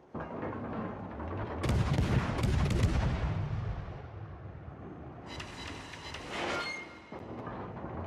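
Shells splash into water with deep thuds.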